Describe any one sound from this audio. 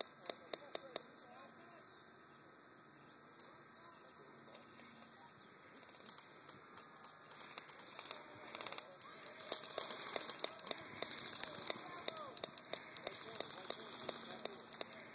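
A paintball gun fires in quick bursts of sharp pops.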